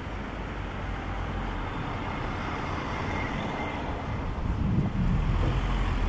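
Traffic hums steadily on a city street.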